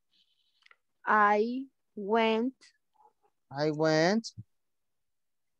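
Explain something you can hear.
A woman speaks slowly in short phrases over an online call.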